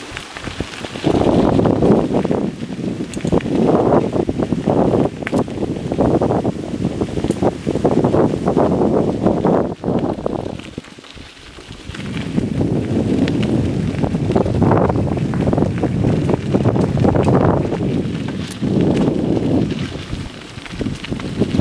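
Wind buffets loudly in gusts outdoors.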